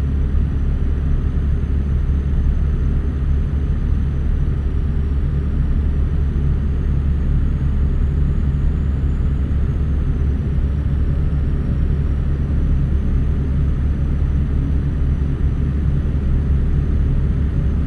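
Tyres roll on the road with a steady hum.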